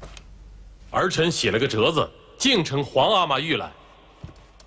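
A young man reads out formally and respectfully.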